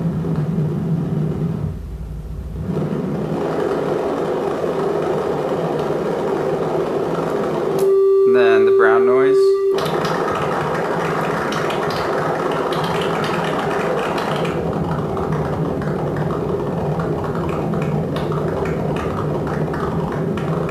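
A modular synthesizer plays droning, shifting electronic tones.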